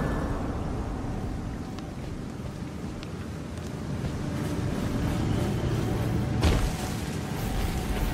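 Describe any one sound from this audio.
Footsteps crunch on gravel and rock.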